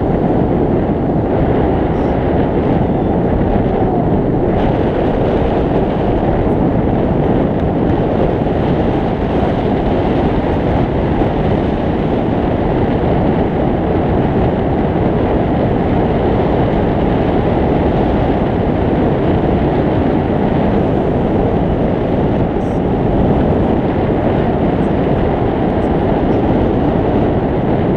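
Strong wind rushes past loudly and steadily, buffeting hard.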